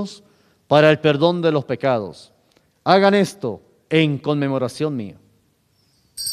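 A middle-aged man speaks solemnly into a microphone.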